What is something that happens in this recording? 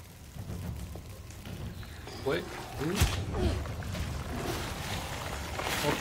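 A fire bursts with a loud roar.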